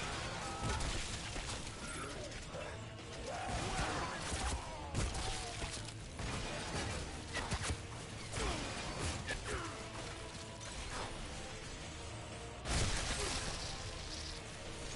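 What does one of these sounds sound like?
Gunshots fire rapidly in bursts.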